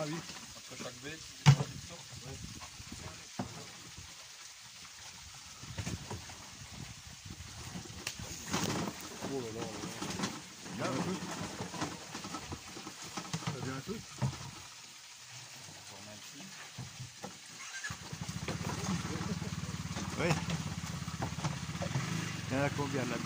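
A plastic lid knocks against a bin.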